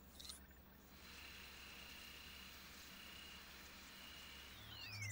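A handheld scanning device gives off a steady, faint electronic tone.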